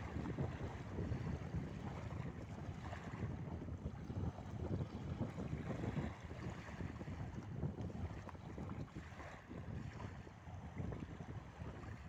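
Small waves wash gently onto a shore.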